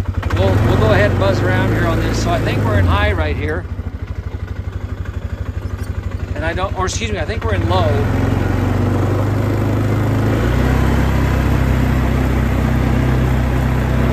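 An engine idles close by with a low, steady rumble.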